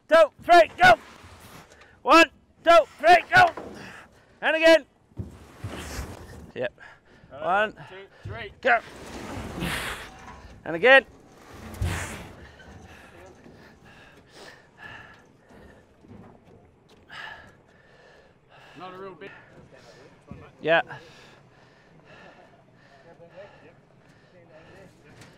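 Several men shout and call out to each other with effort, close by.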